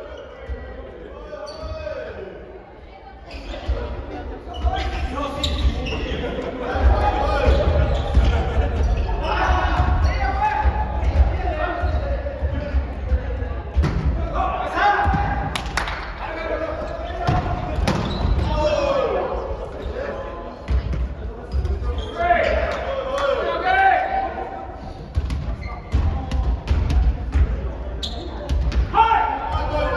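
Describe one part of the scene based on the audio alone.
Young men call out and shout to each other in a large echoing gym.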